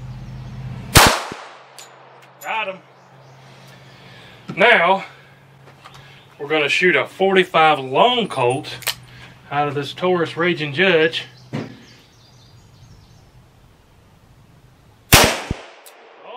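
A handgun fires a loud, sharp shot outdoors, with a short echo.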